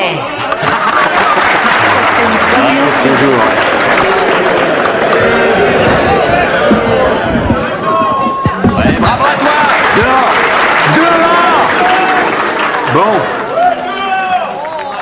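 A crowd cheers, whoops and applauds loudly in a room.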